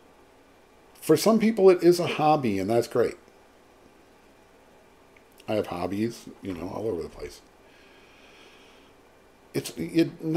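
A middle-aged man talks with animation close to a microphone, in short bursts with pauses.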